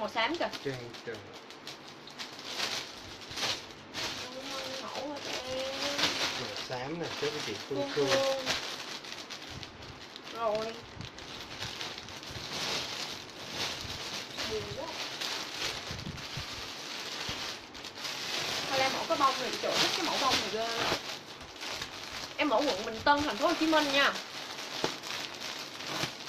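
A young woman talks up close, casually and with animation.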